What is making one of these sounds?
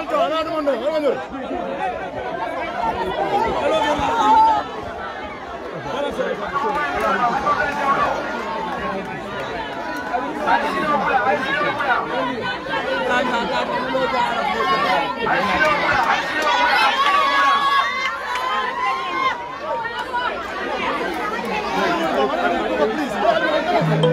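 A crowd of men talks and shouts close by.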